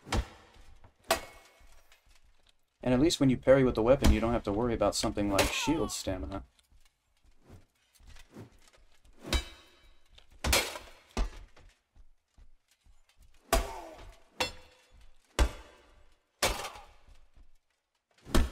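Blades strike with sharp metallic hits.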